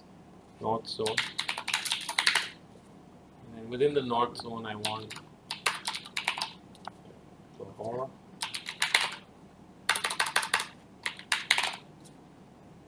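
A keyboard clatters with quick typing.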